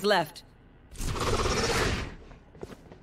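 A magical ability whooshes loudly for about a second.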